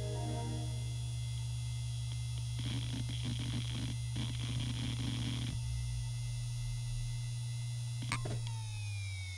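A hard drive hums with a steady whine.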